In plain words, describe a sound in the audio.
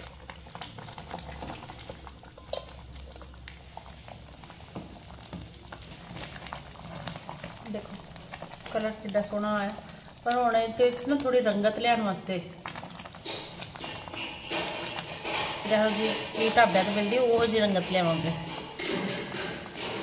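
A wooden spatula stirs thick liquid in a metal pan.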